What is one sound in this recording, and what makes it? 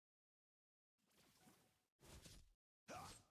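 Short electronic whooshes and hits sound from a video game battle.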